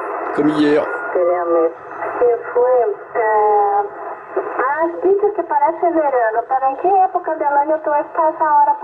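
A man talks through a radio loudspeaker.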